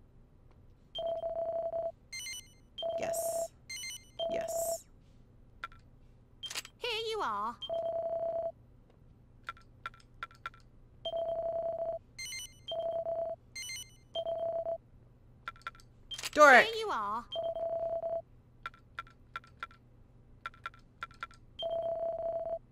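A steady electronic tone beeps in short bursts with each menu choice.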